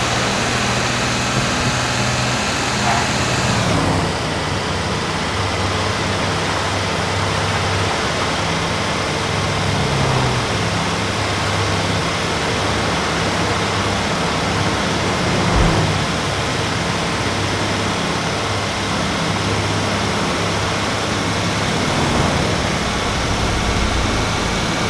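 A heavy truck engine hums steadily as it drives along a road.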